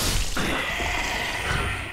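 A sword strikes a skeleton.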